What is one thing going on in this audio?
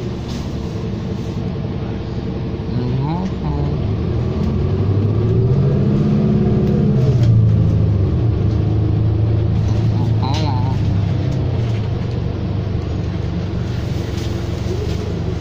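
A bus engine hums and rises in pitch as the bus speeds up.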